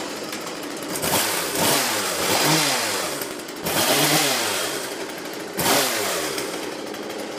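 A chainsaw revs up and down sharply.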